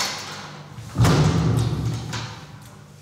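A heavy metal door slams shut with a booming echo.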